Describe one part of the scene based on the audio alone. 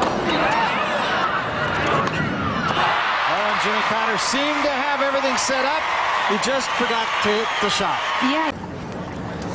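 A large crowd applauds loudly in a big arena.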